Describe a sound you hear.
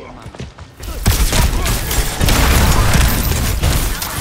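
An energy weapon fires with a loud, crackling roar.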